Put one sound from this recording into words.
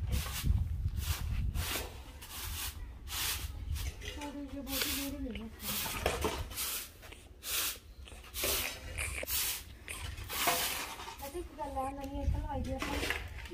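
A broom scrapes and sweeps across a rough floor in repeated strokes.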